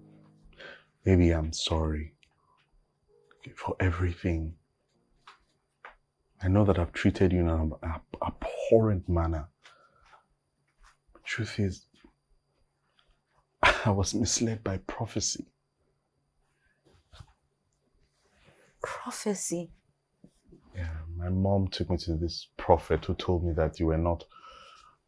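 A man speaks calmly and seriously, close by.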